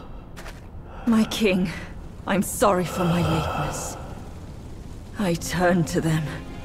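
A woman speaks slowly and solemnly, close by.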